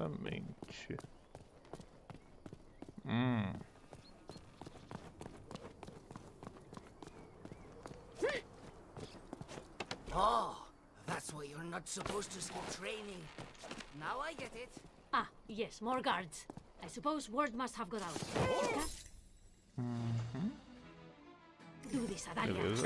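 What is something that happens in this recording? Quick footsteps run over stone and wooden planks.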